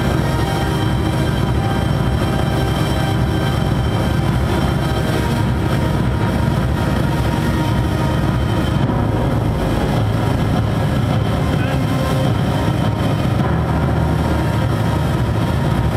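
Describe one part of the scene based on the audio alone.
A synthesizer plays a sustained melody.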